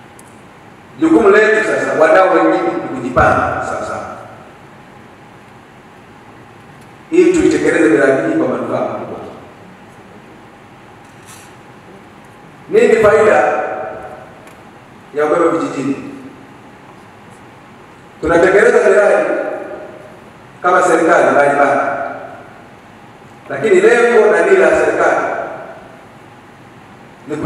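A man speaks into a microphone over loudspeakers in an echoing hall, in short phrases with pauses.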